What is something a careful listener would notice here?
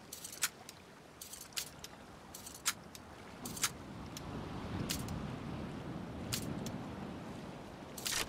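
A lock pick clicks and ticks inside a metal lock.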